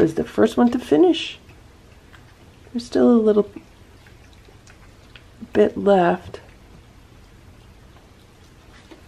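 Cats lap and chew food from plates.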